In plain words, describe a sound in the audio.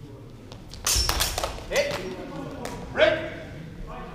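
Practice swords clash sharply several times.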